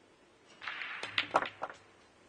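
A cue strikes a pool ball with a sharp tap.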